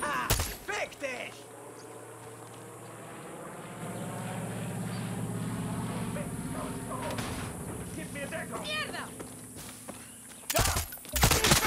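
A propeller plane drones overhead.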